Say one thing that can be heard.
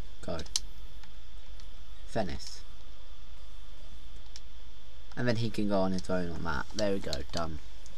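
Soft menu clicks sound as options are chosen.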